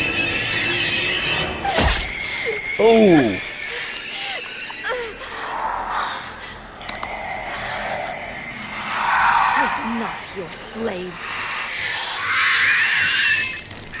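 A monstrous creature growls and shrieks.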